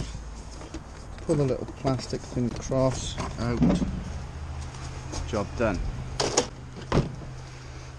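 A plastic door panel clatters and knocks as it is handled.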